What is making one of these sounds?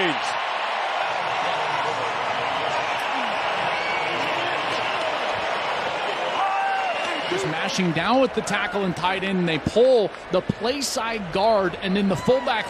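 A large stadium crowd roars and cheers.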